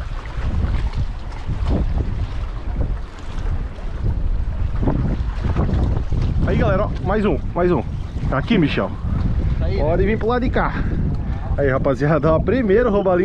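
Small fish splash and thrash at the water's surface.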